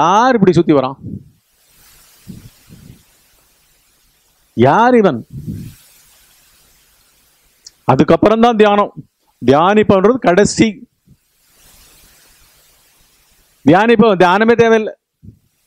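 An older man speaks calmly into a headset microphone, in short bursts with pauses.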